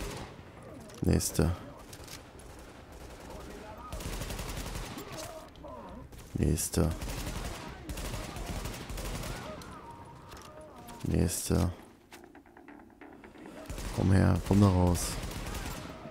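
Rifle shots fire in short, loud bursts.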